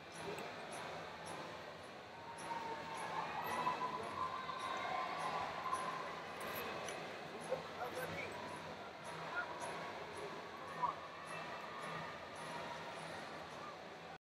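A crowd murmurs and chatters throughout a large echoing arena.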